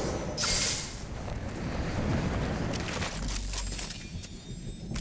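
Wind rushes loudly during a glide down and landing.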